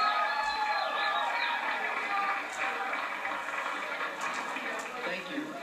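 Cymbals crash on a drum kit.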